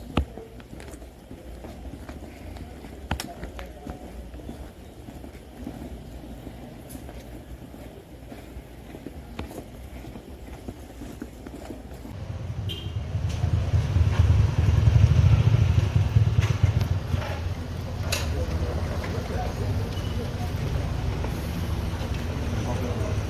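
Several people walk with footsteps on a paved street.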